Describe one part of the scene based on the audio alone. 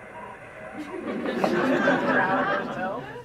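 A young girl speaks through a loudspeaker.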